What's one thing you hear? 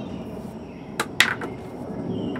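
Game pieces clack on a table.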